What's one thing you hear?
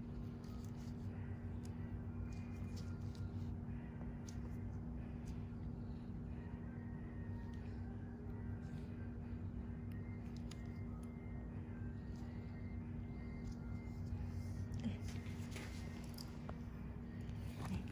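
Gloved fingers rub and press on skin with soft squeaks.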